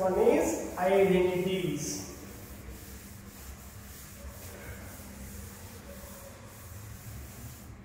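A board duster rubs across a chalkboard.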